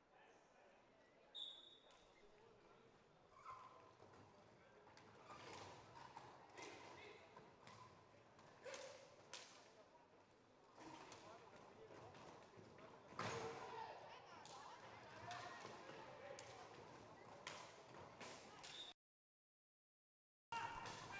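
Skates roll and scrape across a hard floor in a large echoing hall.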